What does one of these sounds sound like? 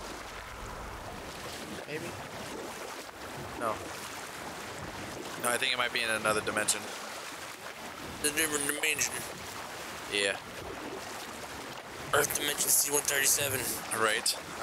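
Oars splash and slosh through water.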